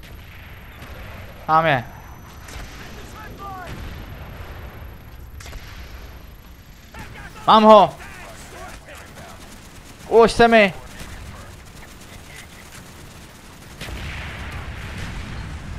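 Explosions rumble in the distance.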